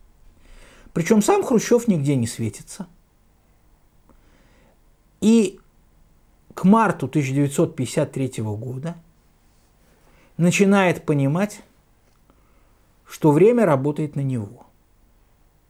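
A middle-aged man speaks earnestly into a close microphone, in short bursts with pauses.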